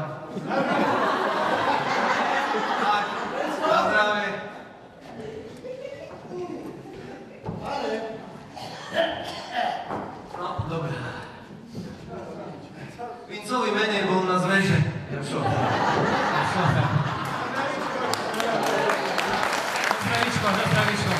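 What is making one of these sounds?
A man speaks with animation through a microphone in a hall.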